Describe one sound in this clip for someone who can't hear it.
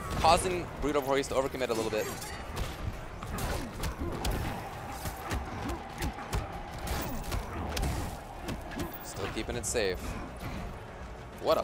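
Punches and kicks land with heavy thuds and whooshes.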